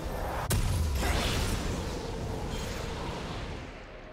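A fiery blast bursts with a deep rumble.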